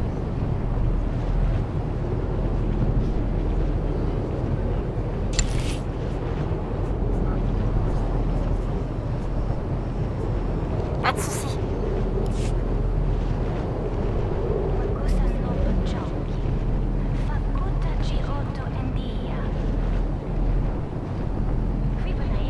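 A hovering vehicle's engine hums steadily.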